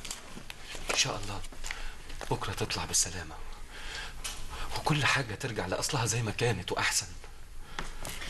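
A man speaks urgently and pleadingly, close by.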